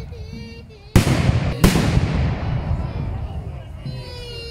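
A cannon fires with a deep booming blast.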